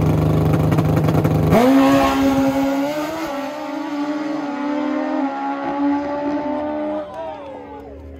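A racing motorcycle engine roars loudly at high revs.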